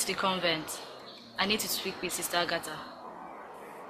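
A woman speaks firmly and close by.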